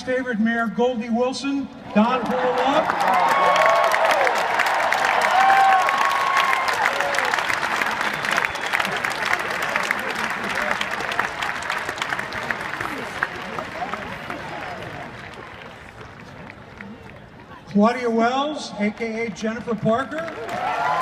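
A man speaks through loudspeakers to a large outdoor crowd.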